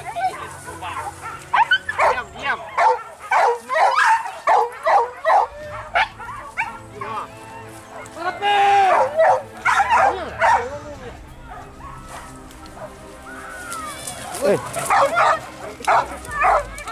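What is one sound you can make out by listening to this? Several dogs bark and yelp excitedly nearby.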